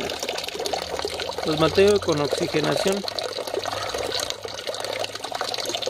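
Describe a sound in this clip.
Water bubbles and splashes steadily.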